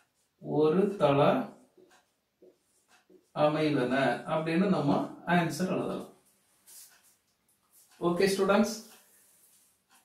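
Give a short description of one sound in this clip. A middle-aged man speaks calmly and clearly, close to a microphone.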